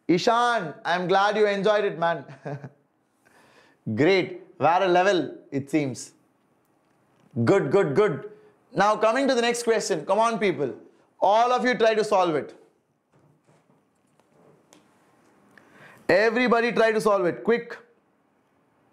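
A man speaks calmly and clearly into a microphone, explaining in short bursts with pauses.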